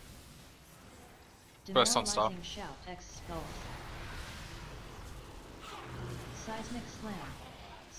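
Magic spells whoosh and burst in a fast fight.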